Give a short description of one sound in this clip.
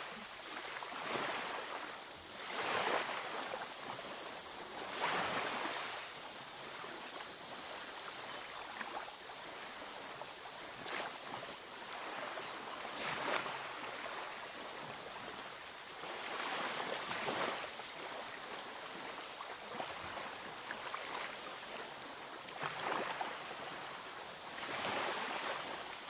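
Paper pages rustle and swish as they are turned.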